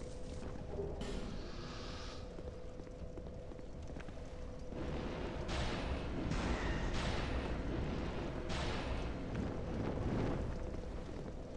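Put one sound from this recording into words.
A magic spell whooshes and crackles.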